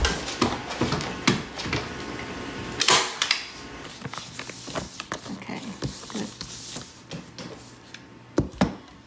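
Plastic sheeting crinkles and rustles.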